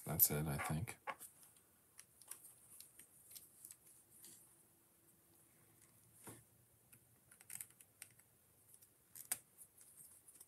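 Small plastic bricks click and snap together.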